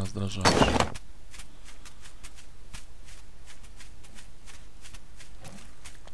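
Footsteps tap quickly on grass.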